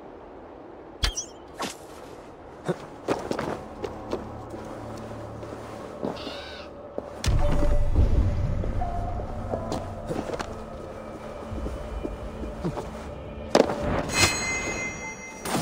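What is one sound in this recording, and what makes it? Blades strike and clang in a fight.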